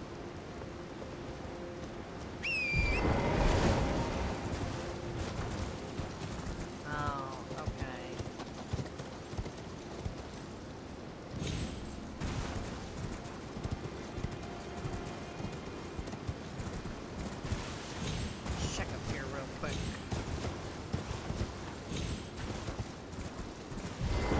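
Footsteps run quickly over rock and grass.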